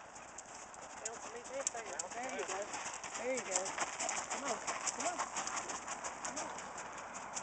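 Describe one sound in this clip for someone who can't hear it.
A horse's hooves crunch and clop on gravel as it walks up close.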